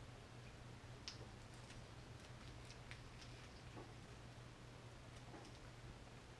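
Small metal parts click faintly in a man's hands.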